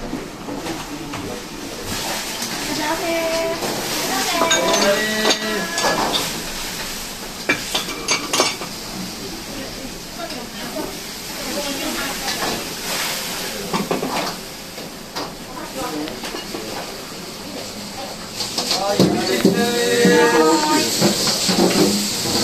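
Metal pots and utensils clatter.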